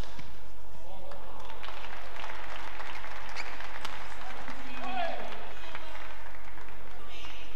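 A crowd cheers and murmurs in a large hall.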